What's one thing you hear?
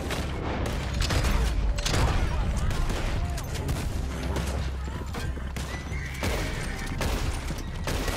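Gunshots ring out and echo.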